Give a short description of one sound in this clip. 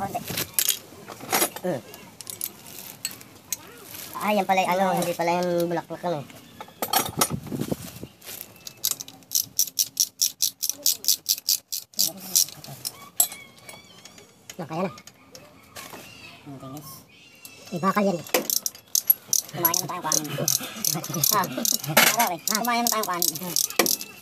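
A ratchet wrench clicks on a metal bolt.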